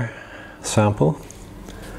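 A hand handles a stiff card, which scrapes and rustles softly.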